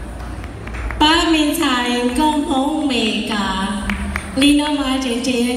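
A woman sings through loudspeakers in a large echoing hall.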